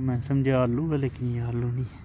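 A shovel scrapes into soil.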